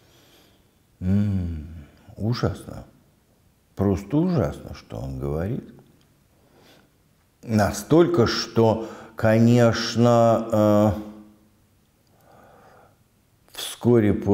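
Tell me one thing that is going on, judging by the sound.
An elderly man speaks calmly and slowly close to a microphone.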